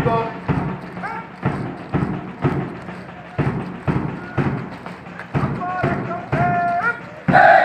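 Many boots stamp on the ground in a steady marching rhythm.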